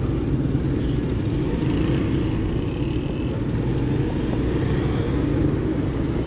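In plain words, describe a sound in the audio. Car engines idle nearby in slow traffic.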